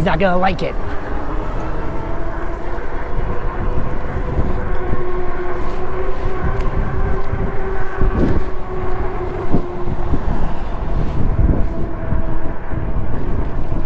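An electric bike motor hums steadily as the bike picks up speed.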